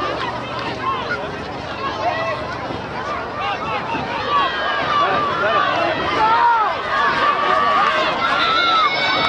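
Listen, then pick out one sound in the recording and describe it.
A crowd of people shouts and cheers outdoors, growing louder.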